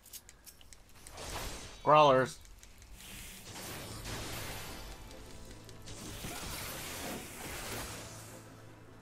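Game combat sounds clash and burst loudly.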